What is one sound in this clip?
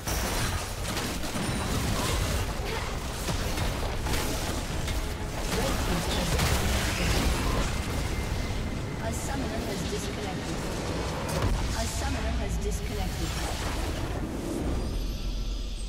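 Video game spells and attacks crackle and blast in a busy battle.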